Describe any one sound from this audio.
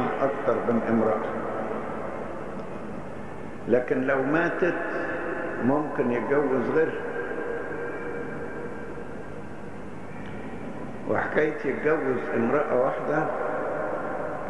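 An elderly man speaks slowly and calmly into a microphone, heard through a loudspeaker with an echo.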